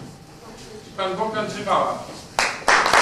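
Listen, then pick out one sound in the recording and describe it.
A man speaks briefly and calmly into a microphone.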